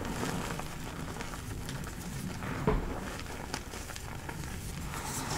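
Hands squeeze and crunch soft powder with quiet, squeaky crackling.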